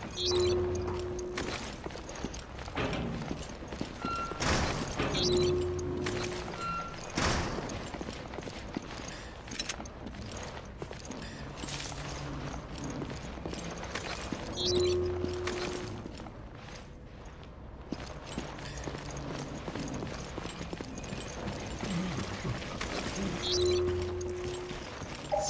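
An electronic scanner hums and beeps.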